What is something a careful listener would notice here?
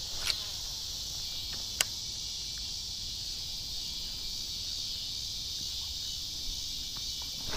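Insects buzz steadily in trees outdoors.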